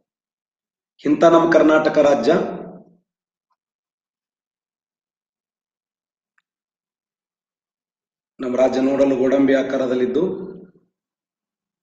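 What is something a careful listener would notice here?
A man speaks calmly into a microphone in short bursts.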